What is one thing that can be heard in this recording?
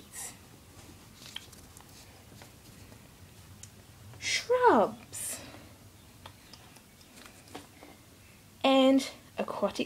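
A small animal paws at a sheet of paper, rustling it.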